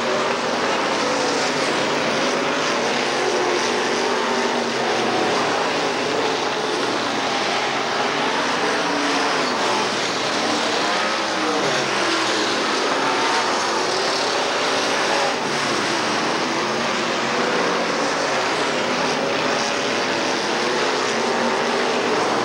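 Race car engines roar loudly as the cars speed past.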